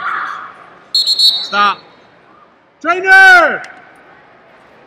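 A referee blows a whistle sharply in a large echoing hall.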